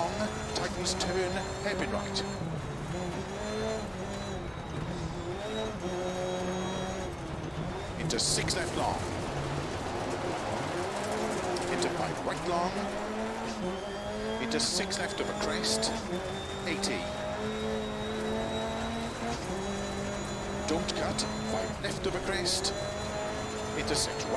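A rally car engine revs up and down as gears shift.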